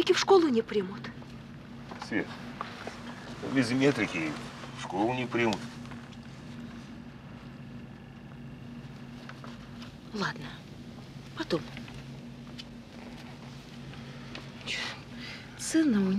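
A middle-aged man speaks quietly and gently nearby, in short phrases.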